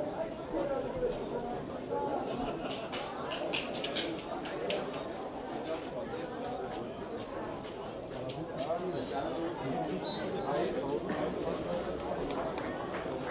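Men chatter nearby outdoors.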